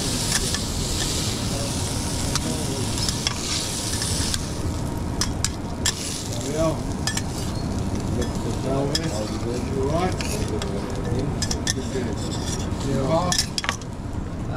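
Metal spatulas scrape and tap on a griddle.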